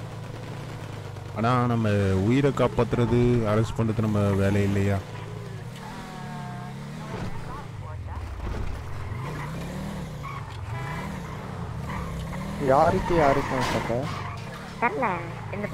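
A car engine roars and revs up and down as it drives.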